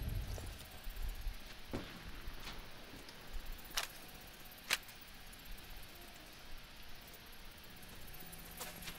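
Footsteps thud and rustle through tall grass.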